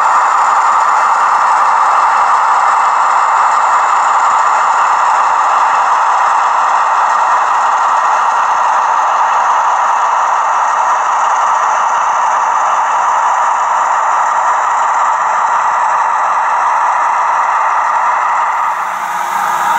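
A model locomotive's electric motor whirs steadily as it rolls along the track.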